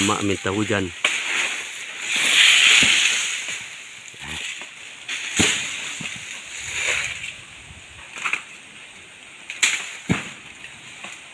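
Palm fronds rustle in the wind.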